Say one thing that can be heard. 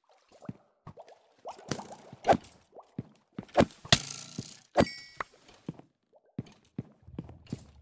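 Underwater bubbles gurgle and pop.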